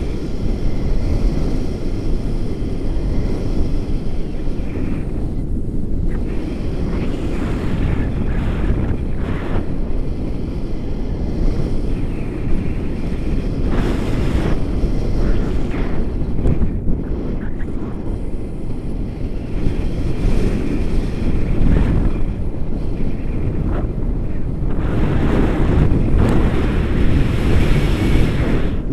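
Strong wind roars and buffets against a microphone throughout.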